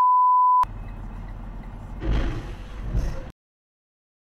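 A truck crashes into a car with a loud crunch.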